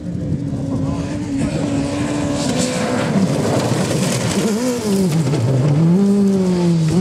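Gravel sprays and crunches under spinning tyres.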